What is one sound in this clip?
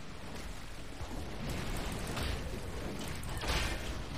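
Magic blasts and blows clash in a noisy fight.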